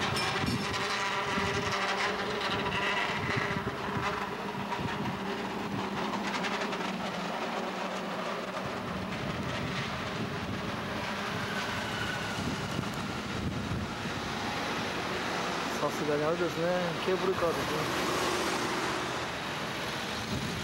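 A cable car bell clangs.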